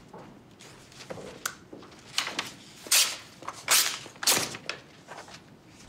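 Paper rustles as a sheet is handed over.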